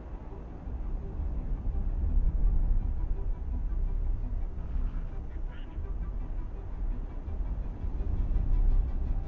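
A spaceship engine rumbles low and steady.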